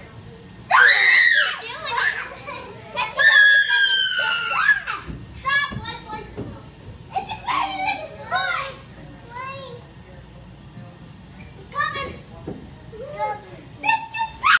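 A young child shouts and squeals excitedly nearby.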